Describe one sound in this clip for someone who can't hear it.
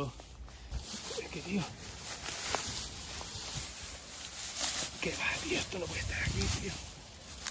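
A man talks briefly nearby.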